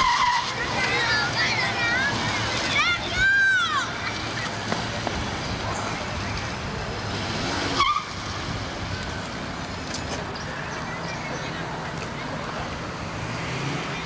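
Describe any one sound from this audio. A car engine revs and hums.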